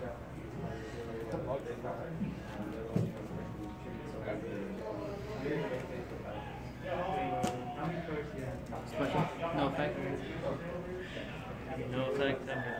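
Several people talk nearby.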